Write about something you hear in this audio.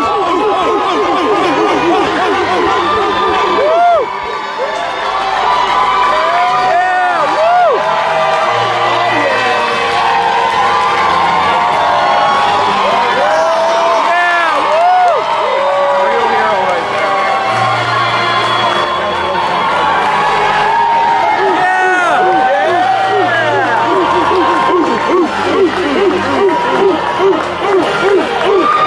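A large crowd cheers and sings along loudly in a big echoing hall.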